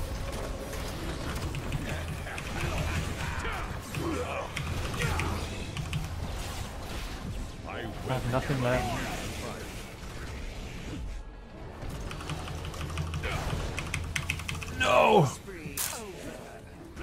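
Magic blasts and clashes of a video game battle ring out.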